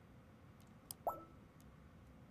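A short electronic chime sounds.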